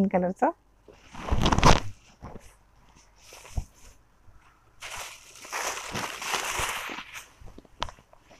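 Silk fabric rustles as it is unfolded and handled.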